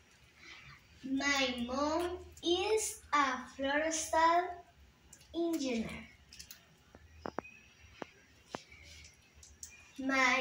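A young girl speaks clearly and slowly, close by, as if reading out.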